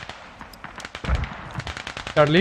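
A rifle shot booms and echoes.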